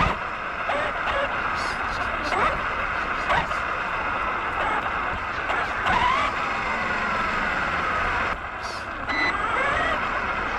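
A radio-controlled truck's brushless electric motor whines.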